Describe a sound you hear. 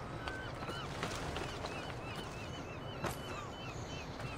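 Birds chirp nearby.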